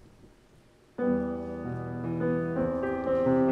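A choir of girls begins to sing together.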